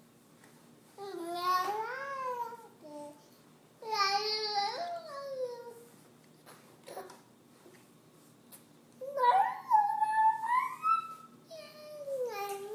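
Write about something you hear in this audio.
A baby squeals and babbles loudly close by.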